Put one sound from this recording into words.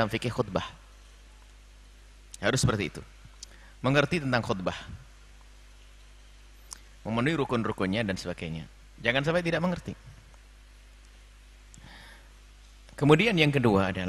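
An elderly man speaks calmly into a microphone, in short phrases with pauses.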